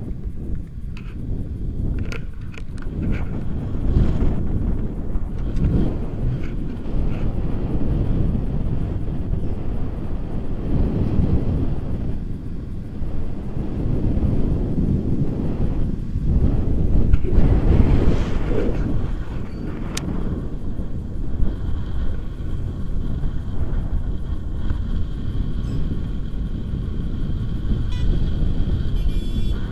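Strong wind rushes and buffets loudly against a microphone.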